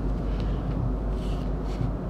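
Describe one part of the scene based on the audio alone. A folding ruler clicks against a wooden board.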